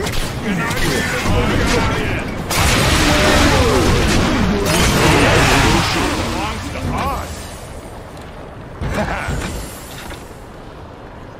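Loud magical blasts and crashes burst one after another.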